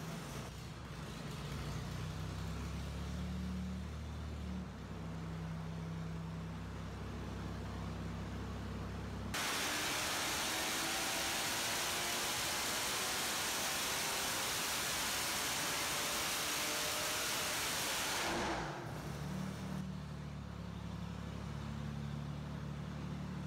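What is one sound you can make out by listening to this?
An engine runs with a steady low hum.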